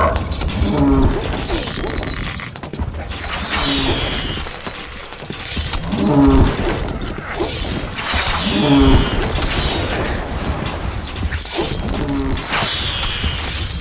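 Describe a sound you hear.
Arrows whoosh through the air in repeated volleys.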